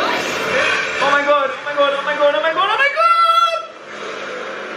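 A young man cries out in distress, his voice rising high.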